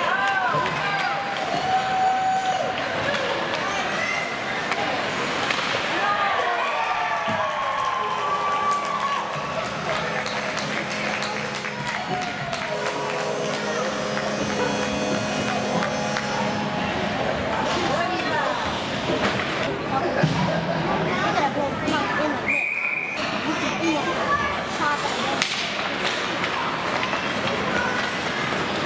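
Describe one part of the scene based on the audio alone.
A crowd of people cheer and shout in a large echoing hall.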